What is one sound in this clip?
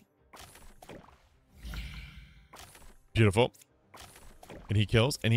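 Short game sound effects swish and clash.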